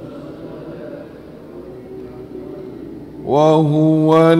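An elderly man speaks softly into a microphone.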